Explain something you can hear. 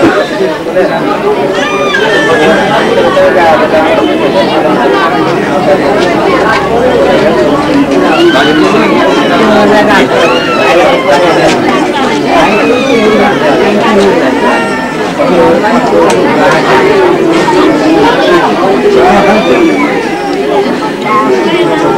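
A crowd of men and women chatter and talk over one another nearby.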